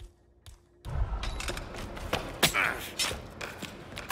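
A man grunts as he is grabbed in a scuffle.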